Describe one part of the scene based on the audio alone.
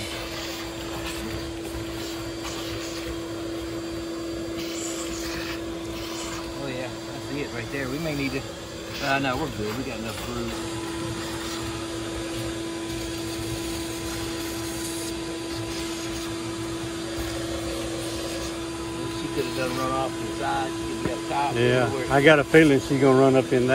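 A vacuum hums steadily.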